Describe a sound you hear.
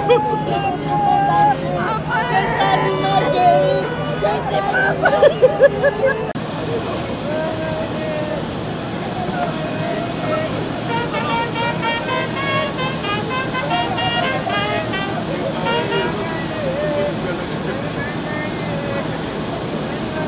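A crowd of women and men talk and call out excitedly close by.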